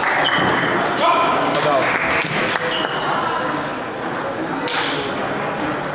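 A busy crowd murmurs and chatters in an echoing hall.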